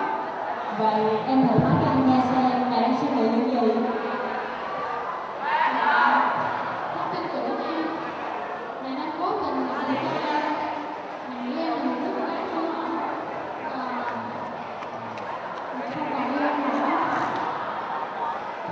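A teenage boy speaks through a microphone over loudspeakers.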